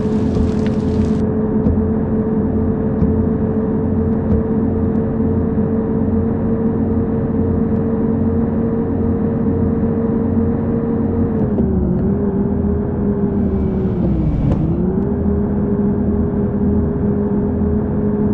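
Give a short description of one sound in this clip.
A bus engine hums steadily, dipping briefly in pitch as it shifts gears.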